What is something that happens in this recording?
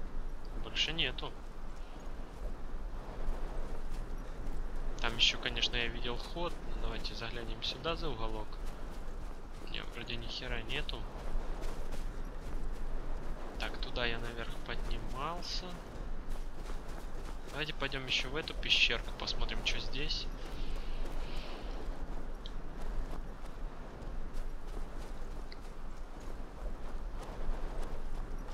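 Footsteps crunch on soft sand.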